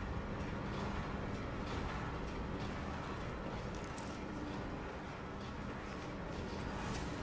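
Footsteps thud on a metal floor.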